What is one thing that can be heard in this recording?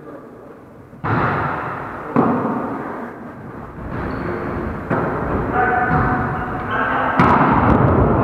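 A volleyball smacks off hands and arms.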